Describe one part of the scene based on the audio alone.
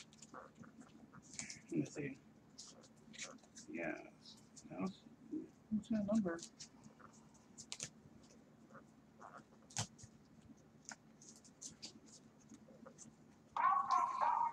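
Plastic card cases click and rattle as they are handled.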